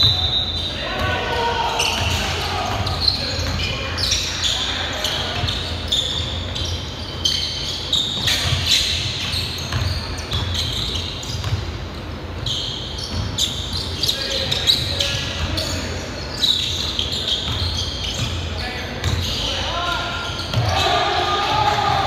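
Young men shout and call to each other across a large echoing gym.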